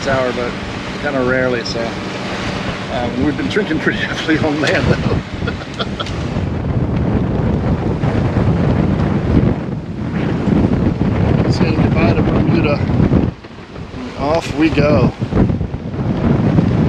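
Wind buffets loudly, as if outdoors at sea.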